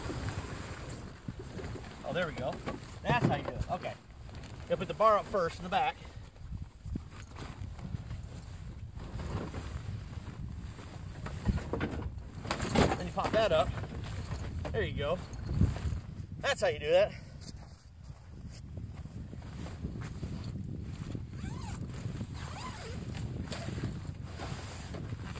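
Tent fabric rustles and flaps as a man handles it.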